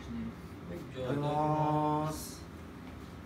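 A man hums appreciatively.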